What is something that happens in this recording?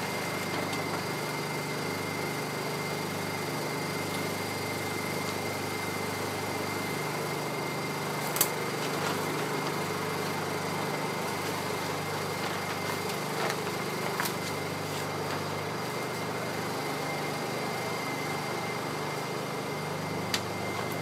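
A small generator engine hums steadily nearby.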